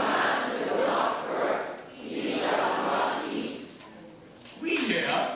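An elderly man speaks with animation into a microphone in a large echoing hall.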